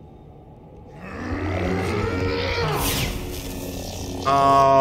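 A lightsaber ignites and hums loudly.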